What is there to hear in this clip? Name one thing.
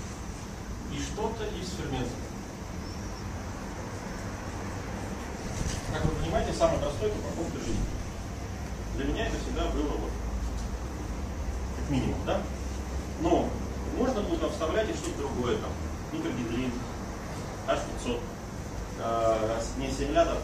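A man lectures with animation in a room.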